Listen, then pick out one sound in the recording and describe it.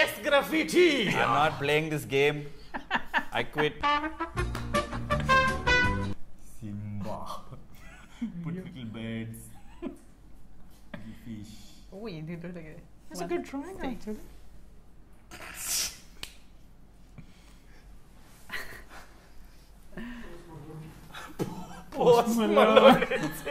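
A young woman laughs close by.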